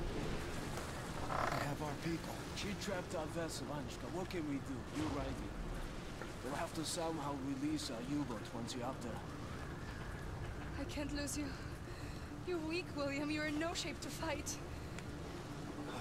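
A woman speaks tensely up close.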